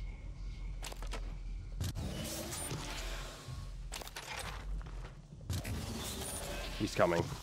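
Footsteps crunch on rocky ground.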